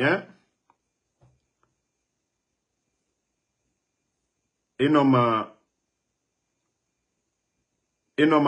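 A young man speaks close to a microphone, with pauses.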